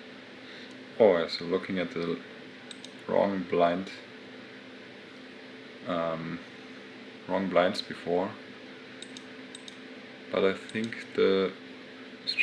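A young man speaks calmly into a close microphone, in short bursts.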